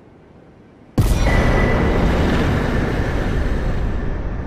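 A loud triumphant fanfare blares suddenly.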